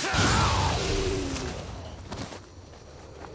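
A sword slashes and strikes in a fight.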